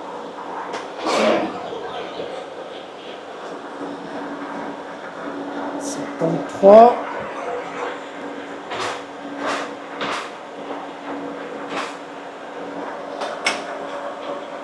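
Metal handles and levers clunk and click on a machine.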